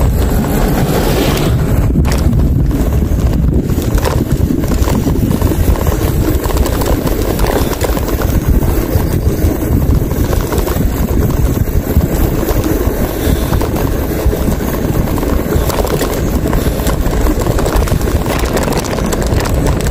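Wind buffets a microphone on a moving bicycle.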